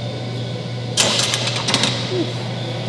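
A barbell clanks against metal.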